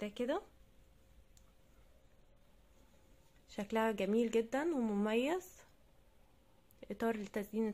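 A crochet hook softly pulls yarn through loops.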